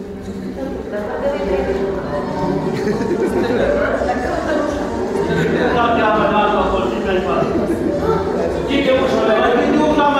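A man chants in a slow, sustained voice in an echoing room.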